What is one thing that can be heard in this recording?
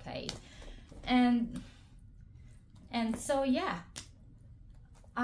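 A leather handbag rustles and clicks as it is handled.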